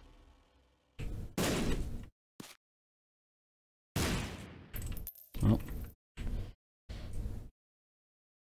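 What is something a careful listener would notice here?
Short game sound effects pop and splash in bursts.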